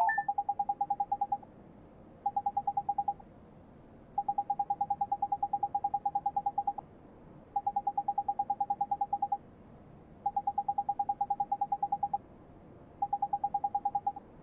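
Rapid high blips chatter in short bursts as game dialogue text types out.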